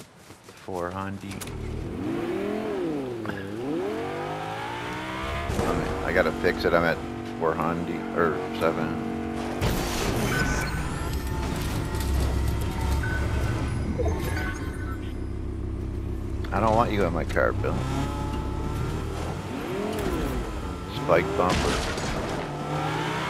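A car engine revs and roars, rising and falling in pitch.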